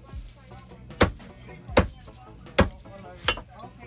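A cleaver chops hard onto a wooden block in loud, sharp thuds.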